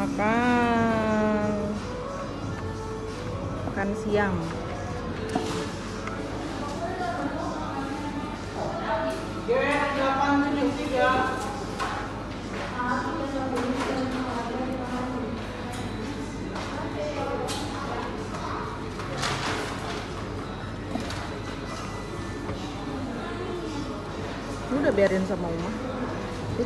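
A young child talks and babbles close by.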